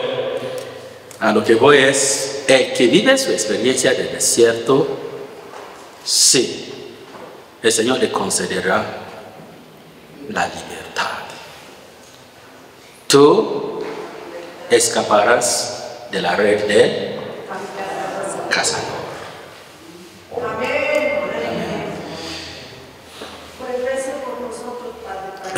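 A man speaks with animation into a microphone in a room with a slight echo.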